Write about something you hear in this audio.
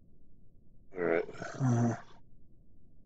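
A man speaks briefly and casually into a microphone.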